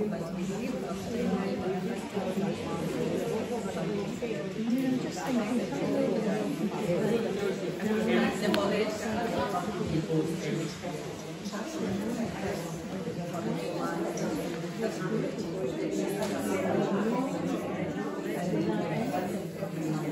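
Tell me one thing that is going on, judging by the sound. A group of women and men sing together in an echoing hall.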